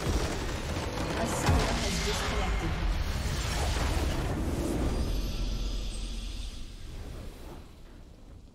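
A crystal structure shatters with a loud magical blast.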